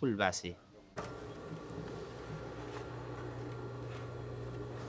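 A sewing machine hums steadily as it stitches fabric.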